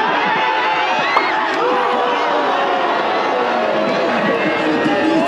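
A large outdoor crowd shouts and cheers loudly.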